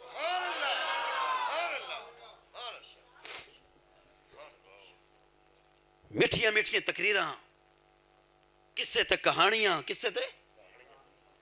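A middle-aged man preaches with fervour into a microphone over a loudspeaker, his voice echoing.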